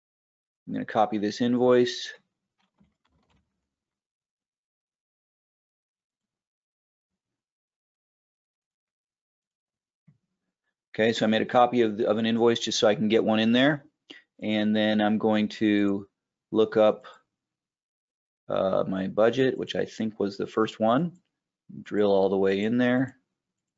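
A man speaks calmly and clearly into a close microphone, in pauses.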